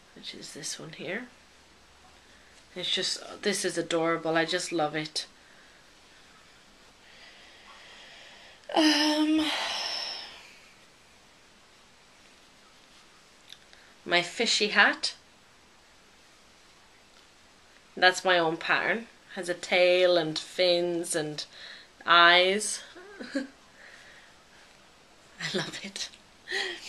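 A young woman talks calmly close by, in short bursts with pauses.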